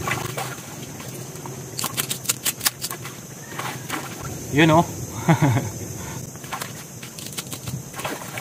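Water splashes and sloshes as hands dig in shallow mud.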